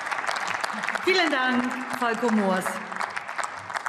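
A man speaks through a microphone over the applause.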